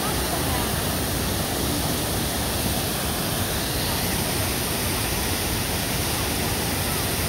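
A fountain splashes steadily nearby.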